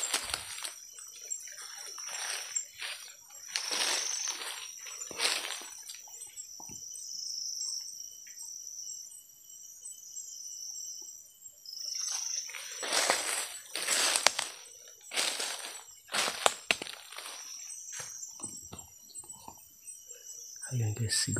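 Footsteps crunch and rustle through dry leaf litter.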